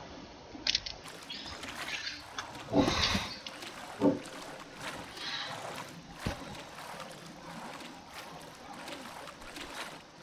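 Water splashes and laps around a swimmer at the surface.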